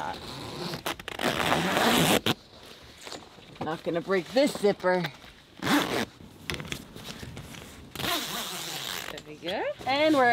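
Fabric rustles and zips.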